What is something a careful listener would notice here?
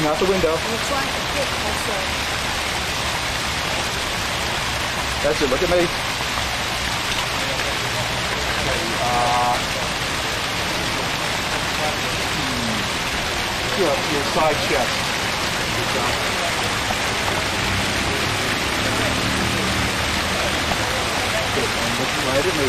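Water splashes steadily from fountains outdoors.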